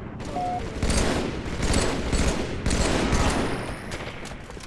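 A video game rifle fires a burst of shots.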